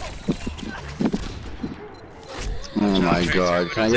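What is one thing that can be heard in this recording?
Pistols fire in quick bursts of shots.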